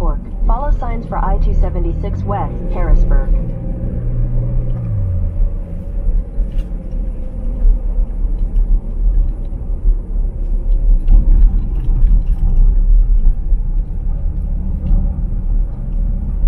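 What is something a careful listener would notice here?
Tyres roll on a road with a steady rumble.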